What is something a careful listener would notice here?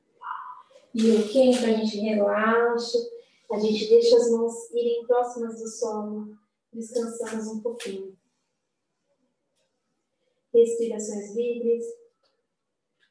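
A woman talks calmly, instructing.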